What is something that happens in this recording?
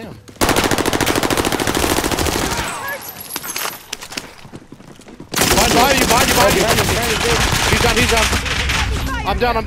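A rifle fires in rapid bursts, loud and close.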